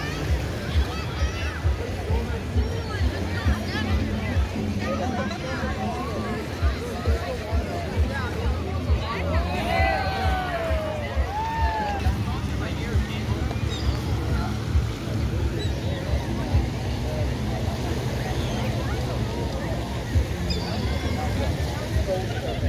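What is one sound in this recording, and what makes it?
Many voices of adults and children chatter outdoors.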